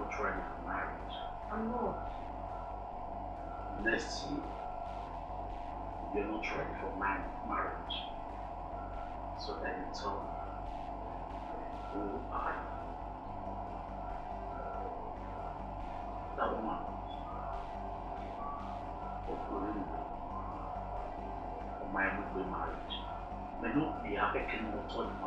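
A woman speaks softly close by.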